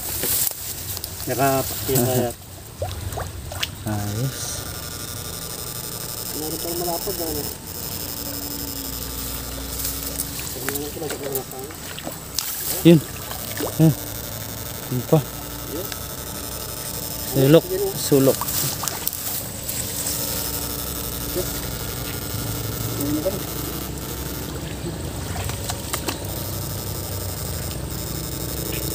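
Shallow water sloshes and splashes close by.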